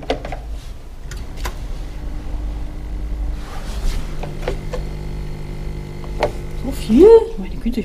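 A vending machine hums steadily.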